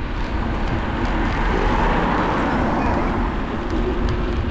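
A car drives past nearby, swelling and fading.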